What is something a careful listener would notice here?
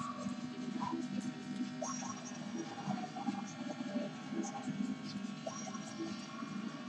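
A racing car engine roars steadily at high speed.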